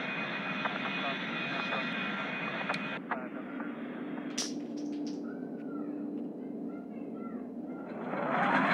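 A twin-engine regional jet's engines whine and roar.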